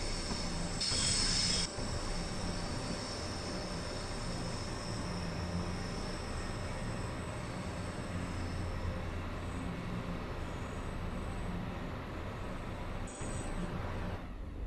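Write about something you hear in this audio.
A train rumbles along the tracks with wheels clattering.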